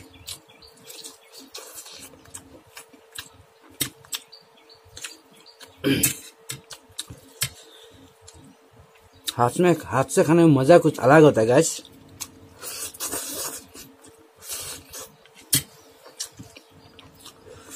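A man chews and smacks his lips close up.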